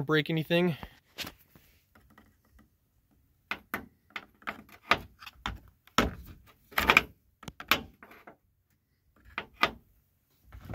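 A small metal tool clicks and taps against hard plastic.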